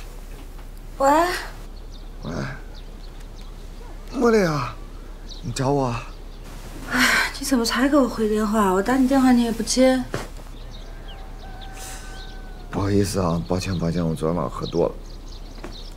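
A young man talks on the phone in a relaxed, friendly voice.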